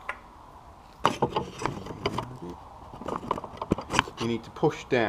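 Metal parts click and clatter as they are handled.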